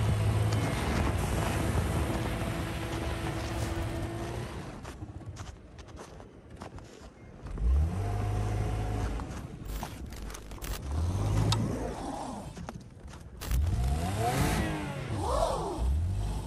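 A car engine revs hard as tyres spin in snow.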